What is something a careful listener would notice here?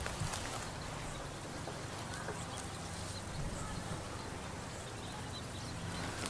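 A goat tears and chews grass.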